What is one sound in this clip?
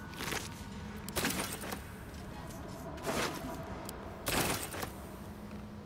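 Short sharp clicks and rustles sound as items are picked up.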